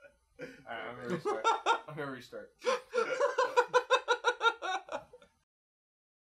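A man laughs close by.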